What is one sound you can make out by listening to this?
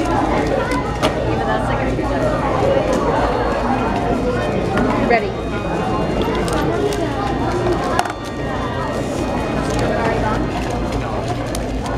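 A plastic puzzle cube clicks as it is turned quickly.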